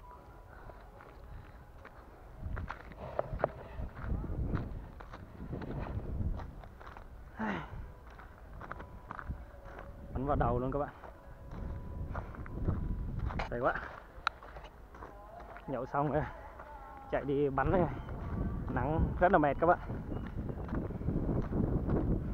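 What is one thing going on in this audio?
Footsteps crunch over dry, cracked clods of soil.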